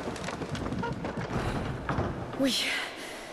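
A heavy wooden wheel creaks and rattles as it is turned.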